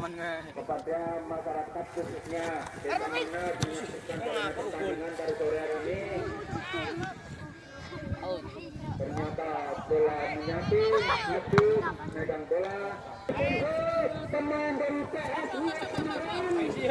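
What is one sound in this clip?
Several men shout and call out across an open field.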